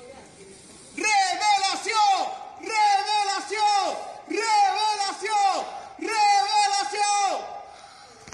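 A young man shouts loudly outdoors.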